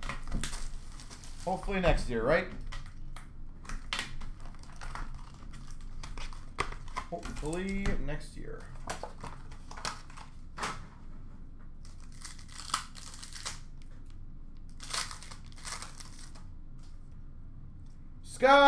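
Foil card packs crinkle and rustle in hands.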